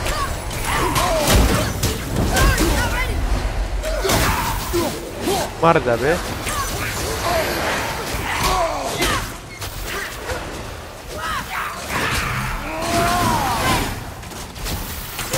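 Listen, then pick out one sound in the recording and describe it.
Creatures shriek and screech in high, wavering cries.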